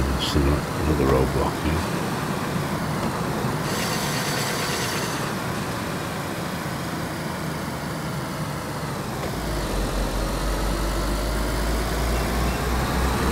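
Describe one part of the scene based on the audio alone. Tyres roll over tarmac.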